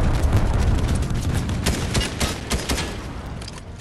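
A laser gun fires in rapid bursts.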